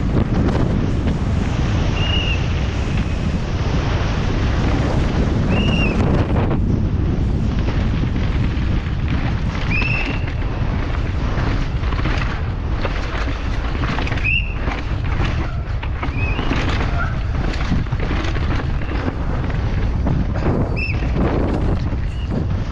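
Bike tyres crunch and skid over dry dirt and stones.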